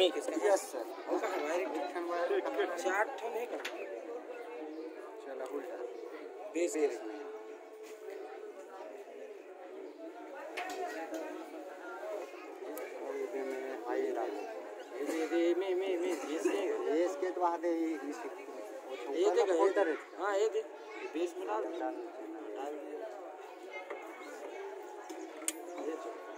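Young men talk and laugh close by, outdoors.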